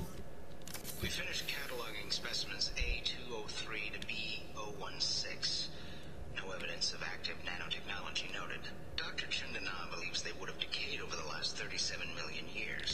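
A man speaks calmly through a speaker.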